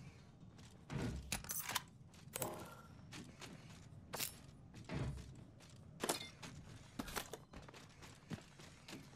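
Items are picked up with short clicks and clatters.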